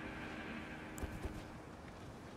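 A sword swings with a sharp whoosh.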